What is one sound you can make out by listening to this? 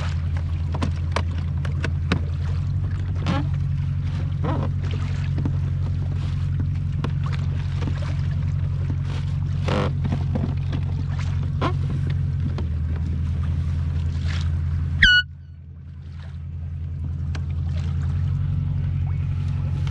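Wind rumbles across the microphone out on open water.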